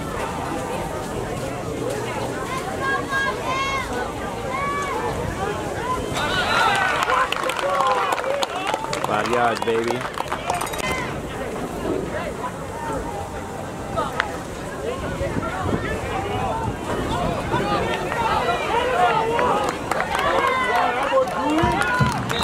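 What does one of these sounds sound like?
Spectators chatter and shout outdoors.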